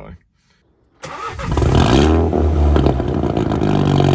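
A car exhaust rumbles loudly as an engine idles and revs.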